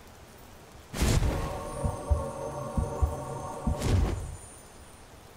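A magic spell hums and crackles loudly in short bursts.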